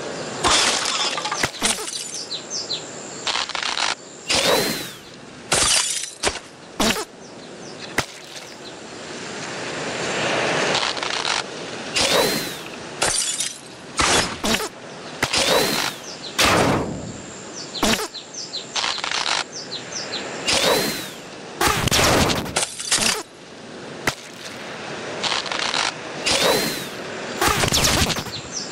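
Blocks clatter and crash as they topple.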